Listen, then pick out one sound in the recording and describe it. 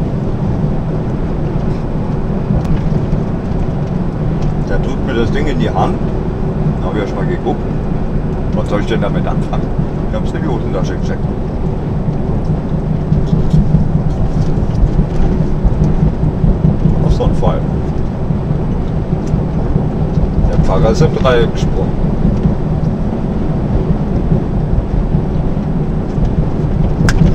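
Tyres roll on a motorway, heard from inside a truck cab.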